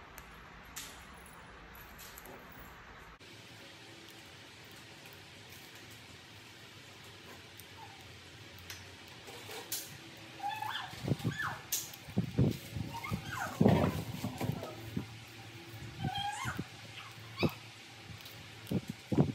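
Hands snap leaves off fresh leafy stems.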